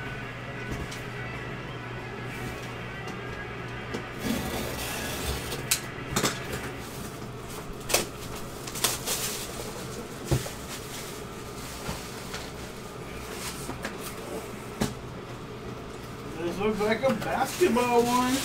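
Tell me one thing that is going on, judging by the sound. Cardboard and packing material rustle and crinkle as hands handle a box.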